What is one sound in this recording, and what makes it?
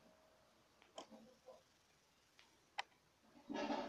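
Short electronic menu clicks sound.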